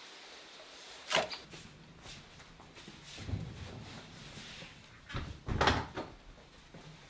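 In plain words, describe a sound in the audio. A wooden door opens and bangs shut.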